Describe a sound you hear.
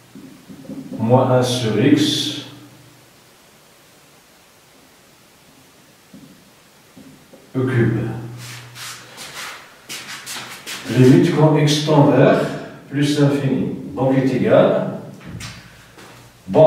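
A man speaks calmly, explaining.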